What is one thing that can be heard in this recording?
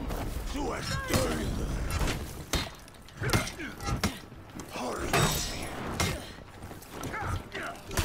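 Swords clash and clang with a ringing sound.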